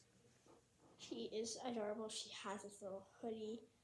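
A young girl speaks close by, calmly.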